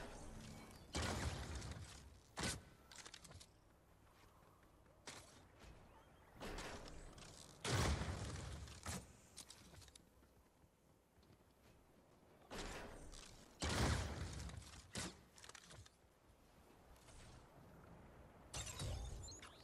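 Loud gunshots blast in bursts, with a short ringing tail.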